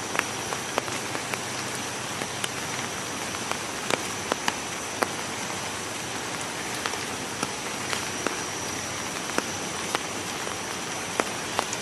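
A cassowary steps over leaf litter.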